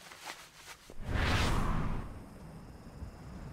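A loud magical whoosh rushes up and fades.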